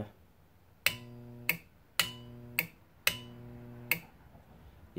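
A switch clicks sharply on and off.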